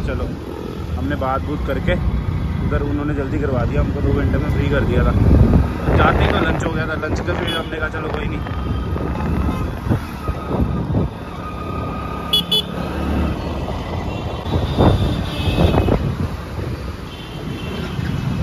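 Traffic rumbles all around on a busy road.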